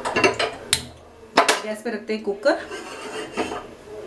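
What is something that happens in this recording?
A metal pot clanks onto a stove.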